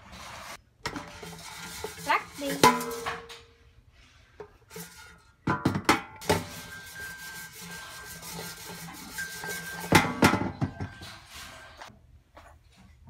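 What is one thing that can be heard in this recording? Fries rattle and scrape in a metal basket.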